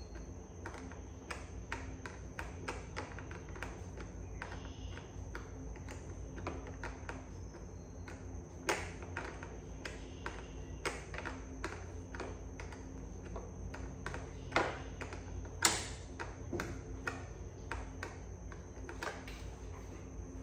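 Metal parts of a motorbike click and knock again and again.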